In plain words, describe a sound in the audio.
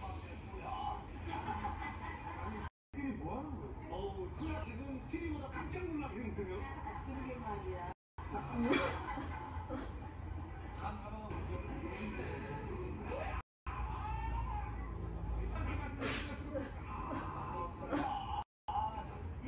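A young woman talks quietly nearby.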